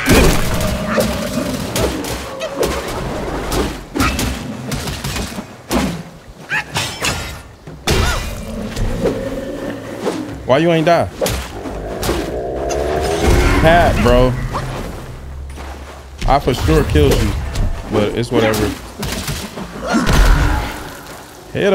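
Blades clash and slash in a game fight.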